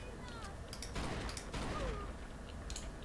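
Gunshots crack in quick succession.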